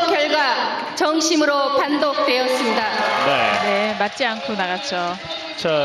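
A woman speaks calmly into a microphone, heard through loudspeakers in a large echoing hall.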